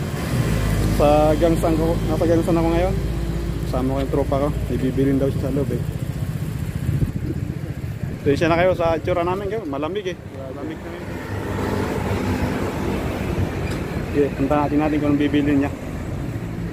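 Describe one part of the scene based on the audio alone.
A young man talks close to the microphone, with animation.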